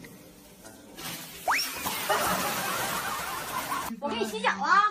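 Water splashes and churns loudly.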